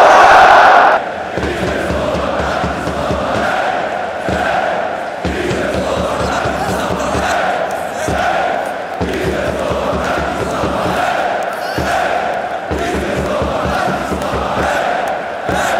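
A group of young men chant together up close.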